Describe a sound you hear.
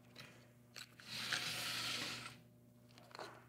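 A plastic case rustles as hands handle it.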